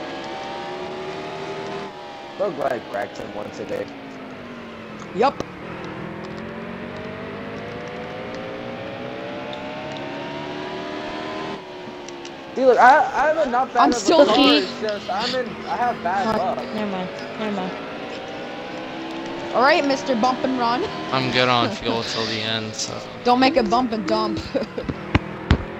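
A race car engine roars steadily, its pitch rising and falling as the car speeds around the track.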